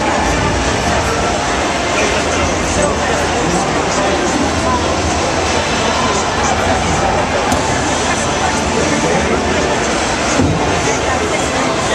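Game music and effects play loudly from speakers.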